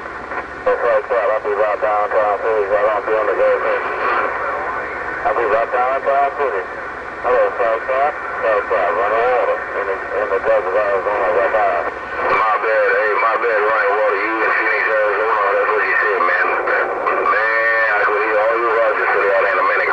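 Voices talk in bursts over a crackly radio speaker.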